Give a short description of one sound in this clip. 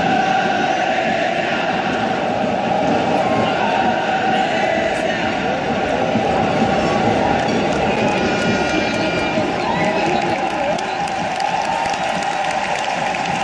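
A large stadium crowd roars and chants loudly.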